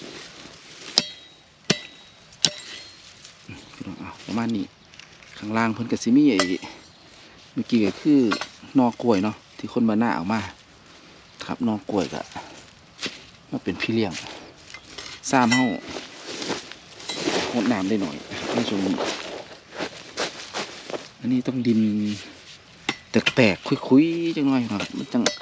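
A shovel scrapes and chops into dry soil.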